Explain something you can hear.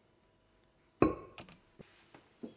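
A metal bowl clanks down onto a wooden board.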